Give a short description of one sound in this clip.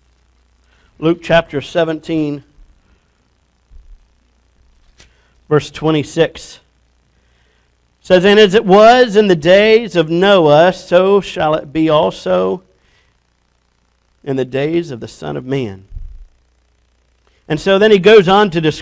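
A man speaks through a microphone in bursts, pausing often.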